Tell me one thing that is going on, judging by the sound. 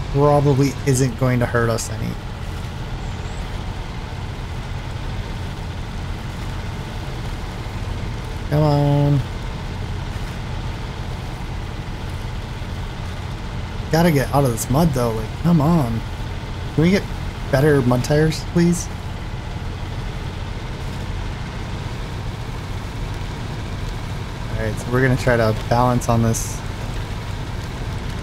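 A heavy truck engine rumbles steadily at low speed.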